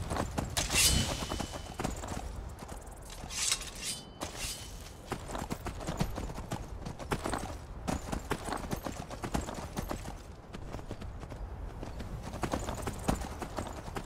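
A horse's hooves thud on grassy ground.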